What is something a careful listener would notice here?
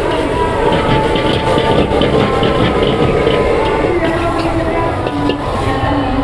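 A gas burner roars under a wok.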